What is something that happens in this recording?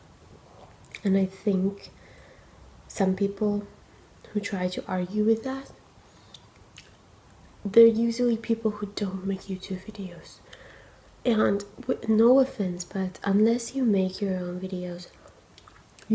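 A young woman talks calmly and closely to a microphone.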